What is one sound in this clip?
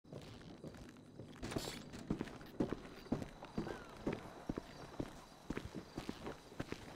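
Footsteps thud steadily on wooden boards and then on dirt.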